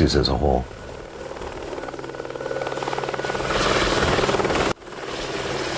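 A helicopter engine roars loudly from inside the cabin.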